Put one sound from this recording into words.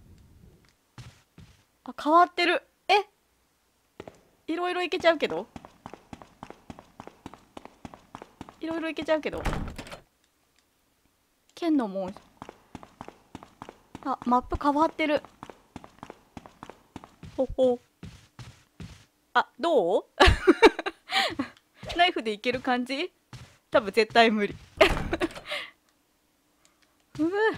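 Footsteps tread steadily on stone stairs.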